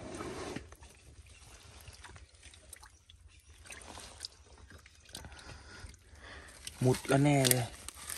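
A hand sloshes and splashes in shallow muddy water.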